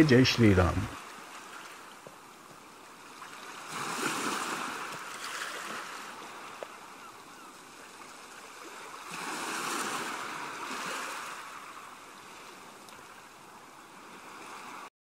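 Waves splash and lap against the shore in gusts.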